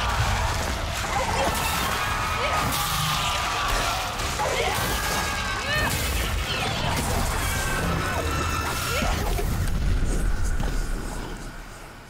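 A monstrous creature shrieks and snarls loudly.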